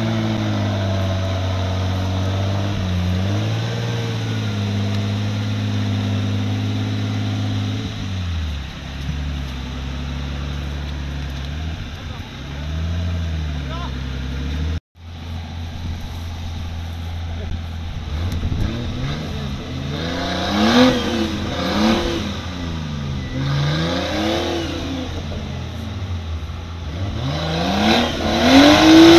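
An off-road vehicle's engine revs and strains close by.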